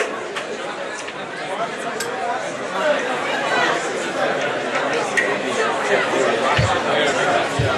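Drums and cymbals are struck.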